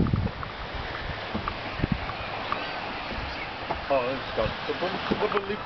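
Gentle waves wash onto a beach.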